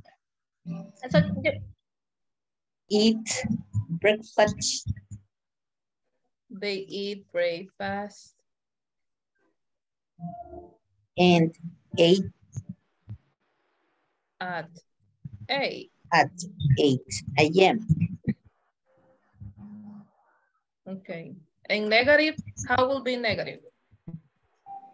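A woman speaks calmly through an online call, explaining slowly with pauses.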